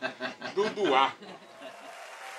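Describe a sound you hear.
An elderly man sings loudly into a microphone.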